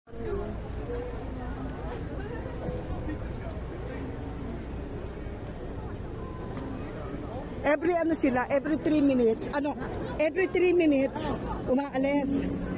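Voices of a crowd murmur in a busy street outdoors.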